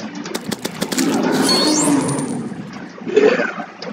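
A large monster bursts apart with a wet splatter.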